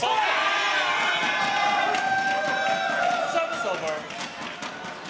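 A large crowd cheers and bangs thundersticks in an echoing hall.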